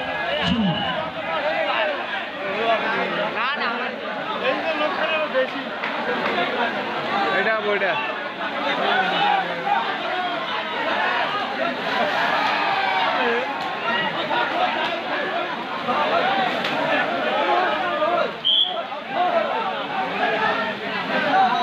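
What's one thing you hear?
Men shout loudly nearby during a game.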